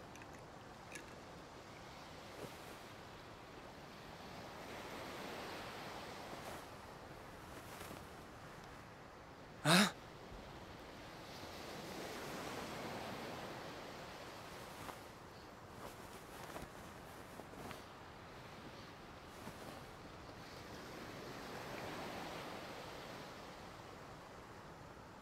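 Waves wash gently onto a shore in slow, swelling surges.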